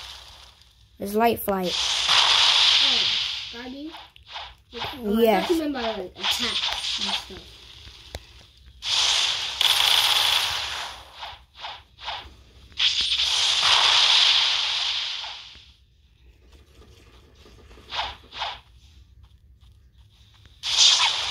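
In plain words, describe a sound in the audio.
Flames burst with loud whooshing blasts.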